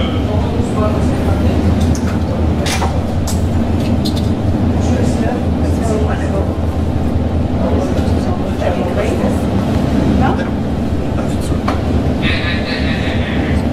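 Train wheels click and squeal on the rails.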